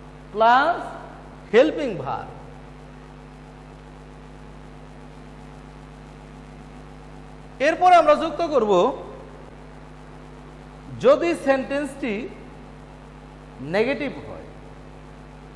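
A man speaks calmly into a clip-on microphone, in short bursts with pauses.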